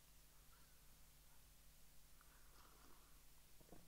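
A man sips a drink quietly close to a microphone.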